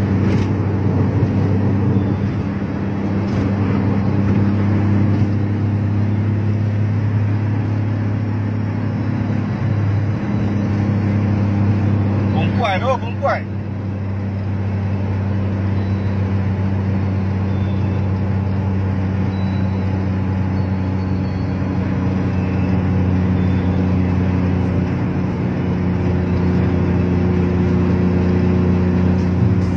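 A motorcycle engine hums steadily at speed close by.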